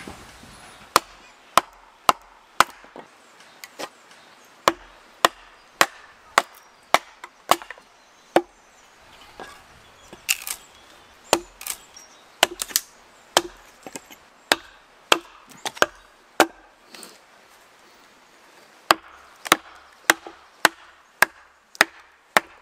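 A wooden mallet knocks sharply on wood again and again.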